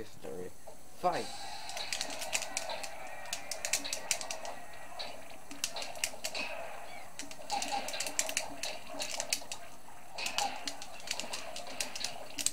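A crowd cheers through a television speaker.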